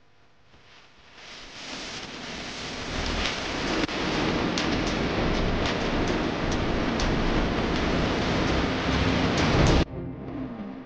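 A cable car rumbles and whirs as it moves along its cable.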